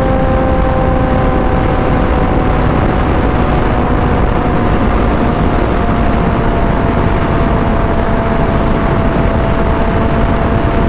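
A motorcycle engine hums steadily at high speed.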